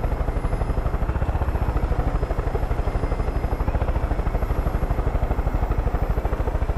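Helicopter rotor blades thump rapidly and steadily from inside the cabin.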